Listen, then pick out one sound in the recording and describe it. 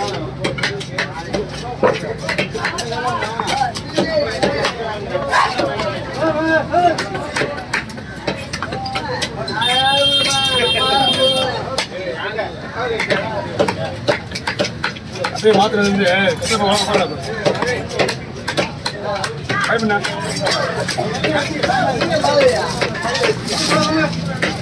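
A cleaver chops through fish on a wooden block with sharp knocks.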